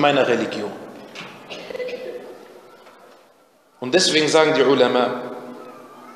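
A man recites in a drawn-out, melodic chant through a microphone with echo.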